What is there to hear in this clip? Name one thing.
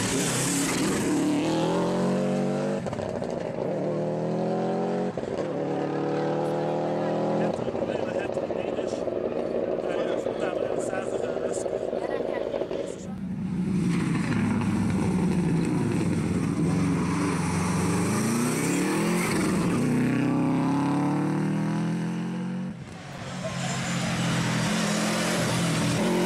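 Rally car engines roar loudly, shifting up through the gears as the cars speed past.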